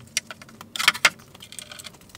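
Wooden parts knock against each other.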